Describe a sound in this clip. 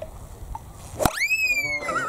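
A golf iron strikes a ball off turf.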